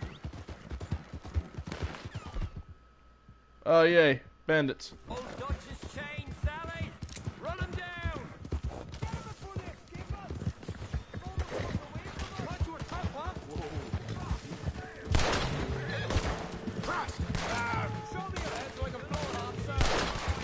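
A horse gallops with quick hoofbeats on the ground.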